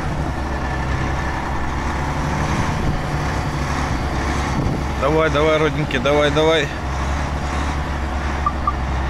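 Tyres crunch over packed snow.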